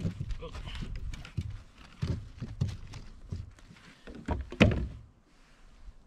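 Gear knocks and thumps against a small boat.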